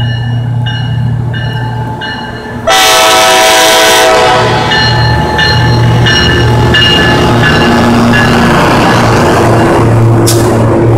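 A diesel train engine rumbles past close by.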